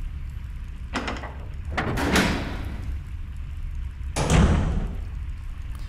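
A heavy metal door creaks slowly open.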